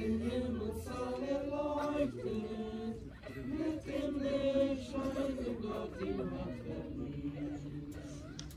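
A group of men and women sing slowly together outdoors.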